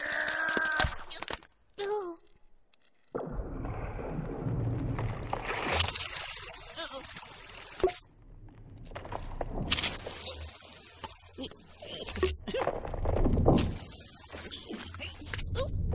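A high-pitched cartoon chipmunk voice speaks with animation.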